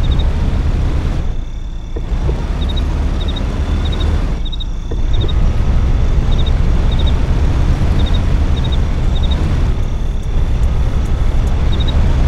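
A car engine rumbles and roars as the car drives.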